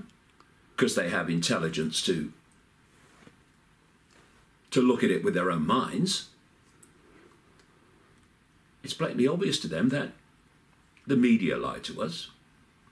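An older man speaks calmly and close up, in short phrases with pauses.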